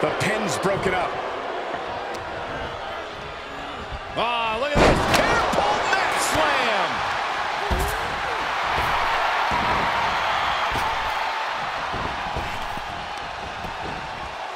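A large crowd cheers and roars throughout.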